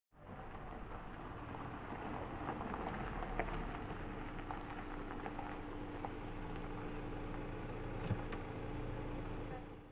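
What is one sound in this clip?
A car engine idles low and rolls slowly closer.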